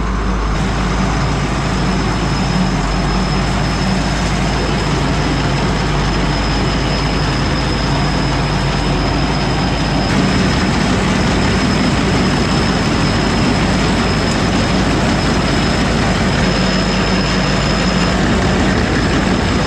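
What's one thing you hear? A grain auger grinds and rattles steadily.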